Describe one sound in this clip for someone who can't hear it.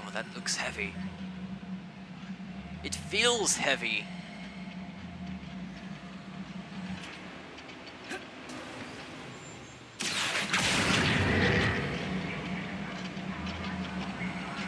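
A magic wand gives off a shimmering, chiming sound.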